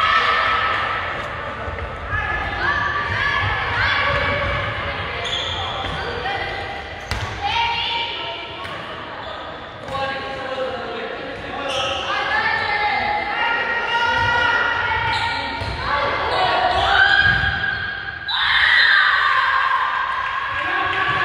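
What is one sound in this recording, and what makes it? A group of young women chant and cheer loudly in a large echoing hall.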